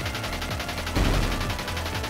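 A video game explosion booms.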